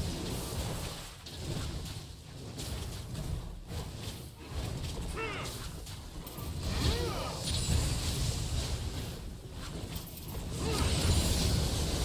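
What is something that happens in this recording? Weapons strike again and again in a fast fight.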